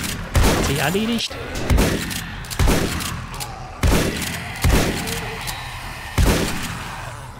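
Gunshots ring out in quick bursts with echo.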